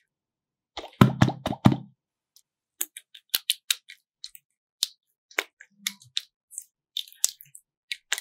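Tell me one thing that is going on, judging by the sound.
Slime squishes wetly between hands.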